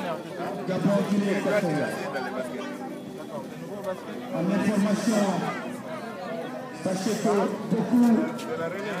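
Several young men talk and chatter nearby outdoors.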